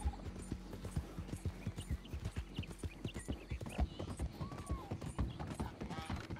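A horse gallops with quick, heavy hoofbeats.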